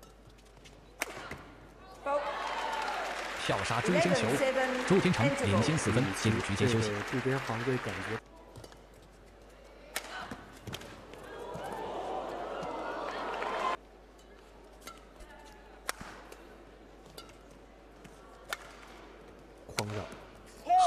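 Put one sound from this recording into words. Shuttlecock hits from badminton rackets crack sharply, back and forth.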